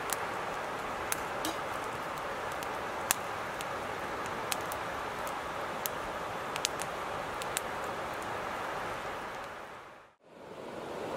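A campfire crackles and pops nearby.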